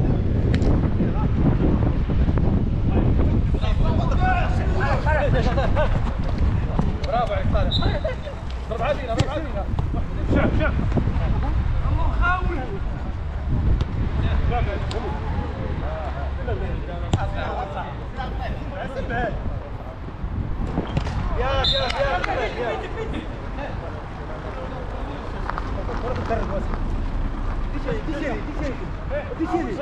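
Men shout and call out to each other outdoors.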